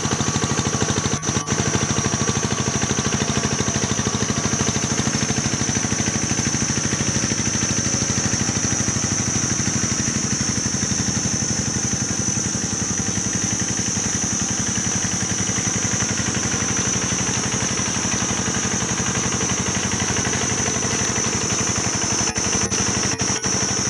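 A small engine chugs loudly and steadily nearby.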